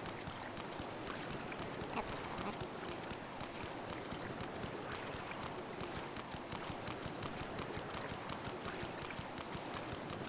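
Wind blows steadily through a snowstorm.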